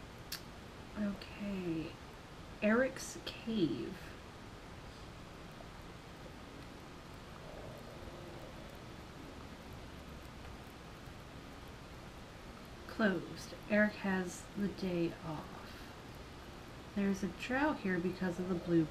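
A young woman talks casually and close to a microphone, in short bursts.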